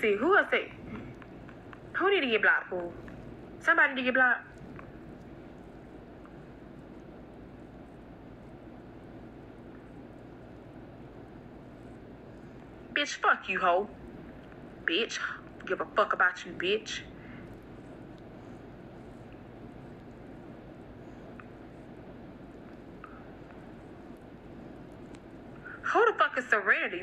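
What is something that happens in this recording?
A woman speaks in short, lively bursts, heard through a phone.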